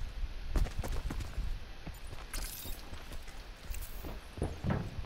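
Footsteps thud quickly on the ground as someone runs.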